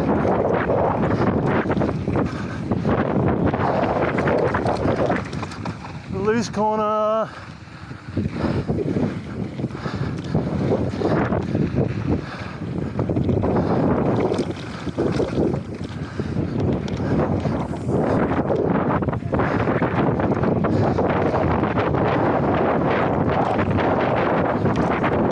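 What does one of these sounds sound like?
Bike tyres roll and crunch over a bumpy dirt trail.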